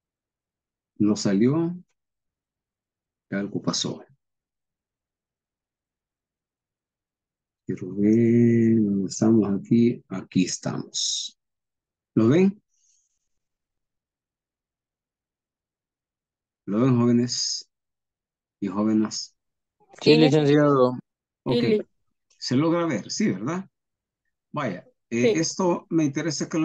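A man speaks calmly through an online call microphone, in short phrases with pauses.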